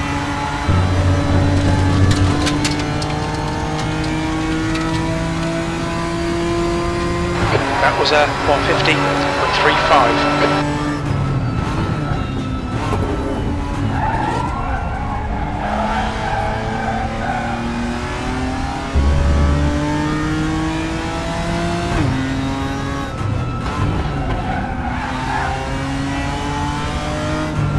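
A racing car engine roars and revs up through the gears.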